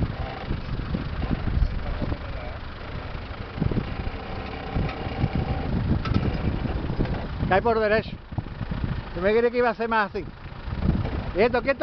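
Tyres crunch and grind over loose rocks.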